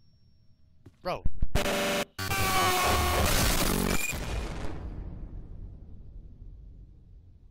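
A sudden crash and a dramatic musical sting play, then slowly fade away.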